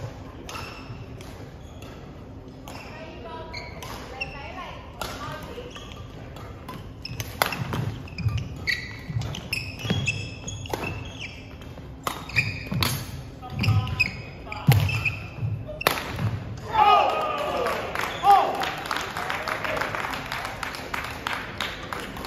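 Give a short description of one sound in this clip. Badminton rackets smack a shuttlecock back and forth in an echoing hall.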